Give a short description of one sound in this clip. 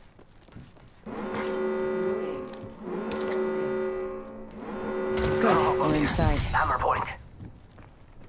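An alarm tone sounds in repeating bursts.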